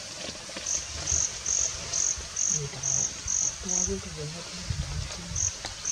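An elephant walks through tall grass, rustling it underfoot.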